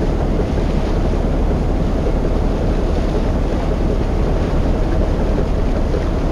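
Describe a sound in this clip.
Water washes against a boat's hull.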